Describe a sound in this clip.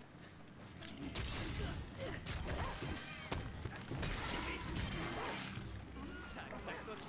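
Blades slash and strike with sharp impacts.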